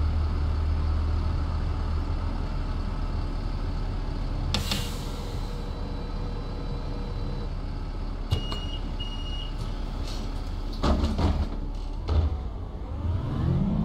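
A bus engine idles with a low steady hum.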